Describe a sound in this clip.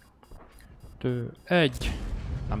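A man speaks excitedly into a microphone.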